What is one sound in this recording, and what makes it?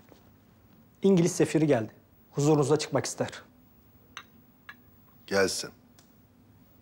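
An elderly man speaks calmly in a low voice.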